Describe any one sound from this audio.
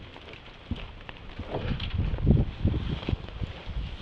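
A door latch clicks and a door opens.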